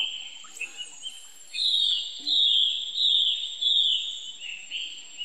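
A baby monkey squeaks in short, high chirps.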